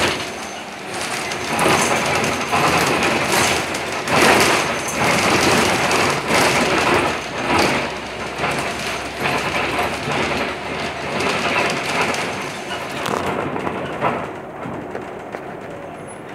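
A bus engine rumbles and the bus rattles as it drives along.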